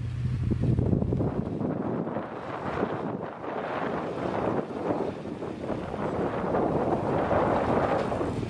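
Wind gusts outdoors across the microphone.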